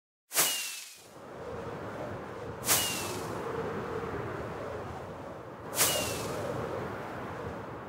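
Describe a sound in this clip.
Wind rushes steadily during fast flight.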